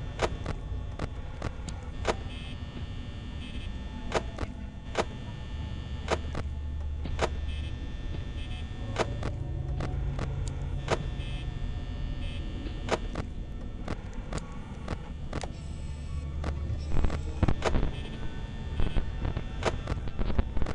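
Electronic static hisses and crackles.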